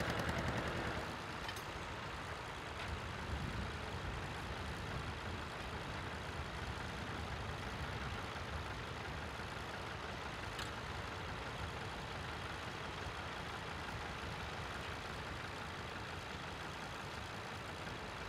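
A small tractor engine idles with a low steady rumble.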